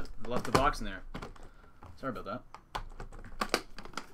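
Metal latches on an aluminium case click open.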